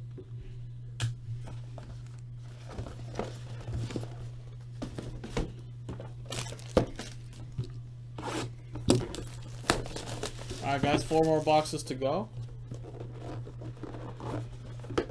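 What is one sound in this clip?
Cardboard and plastic wrapping rustle and knock as hands handle them.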